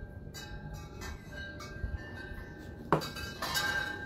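A plastic bottle is set down on a hard floor with a knock.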